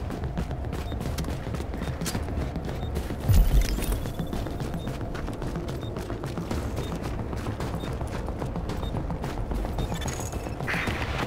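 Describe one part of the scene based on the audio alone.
Footsteps clatter quickly on metal stairs and snowy ground.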